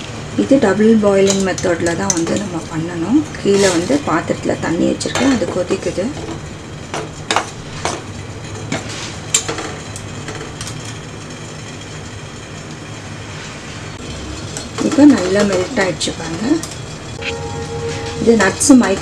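A spoon stirs and scrapes against a metal bowl.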